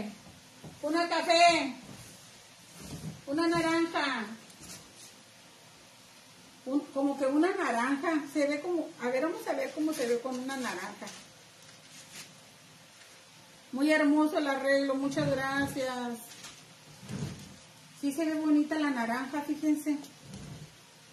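A woman speaks calmly and clearly close by, in short phrases with pauses.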